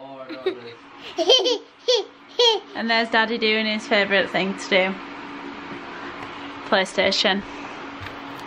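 A toddler squeals and babbles close by.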